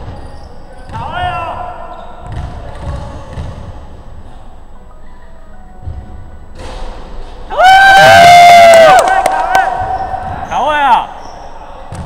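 Basketball shoes squeak on a hardwood court in a large echoing hall.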